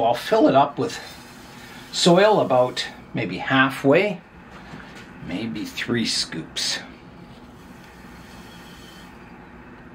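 Soil pours from a metal scoop into a pot.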